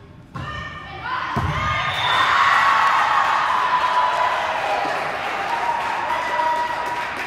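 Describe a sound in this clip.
Young women shout and cheer loudly in a large echoing hall.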